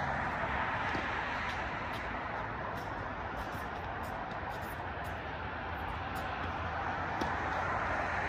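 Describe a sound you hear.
A tennis ball is struck with a racket a few times.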